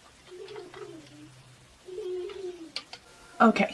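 A small child talks in a high voice.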